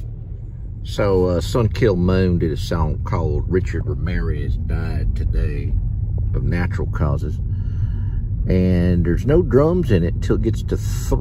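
A song with singing plays loudly through car speakers.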